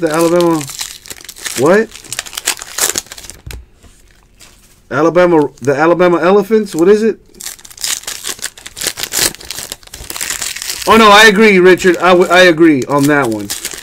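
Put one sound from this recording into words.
Foil wrappers crinkle and tear as hands open card packs.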